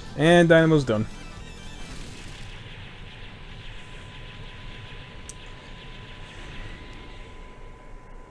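Video game explosions crackle in a rapid series.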